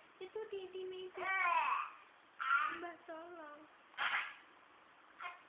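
A baby whines and cries close by in short bursts.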